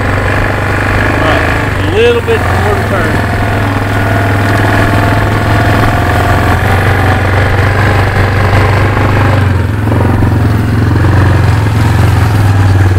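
An all-terrain vehicle engine hums steadily close by.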